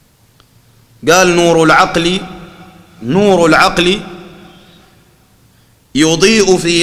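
A man speaks slowly and calmly into a microphone in a room with some echo.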